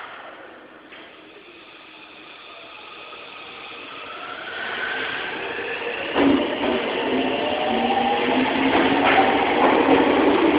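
An electric subway train's traction motors whine, rising in pitch as the train pulls away.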